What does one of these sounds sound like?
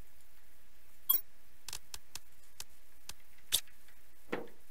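Short sharp clicks tick several times in quick succession.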